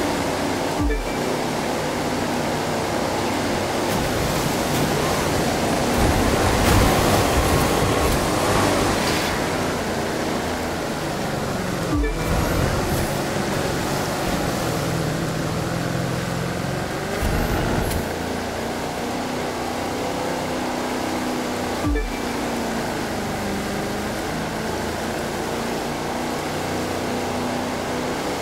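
A powerboat engine roars steadily, rising and falling in pitch.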